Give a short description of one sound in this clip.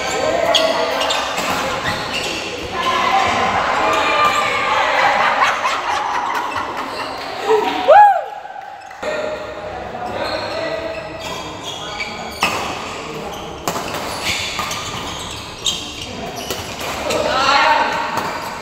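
Men's voices call out and cheer in the hall.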